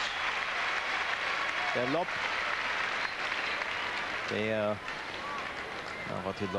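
A large crowd applauds in an echoing hall.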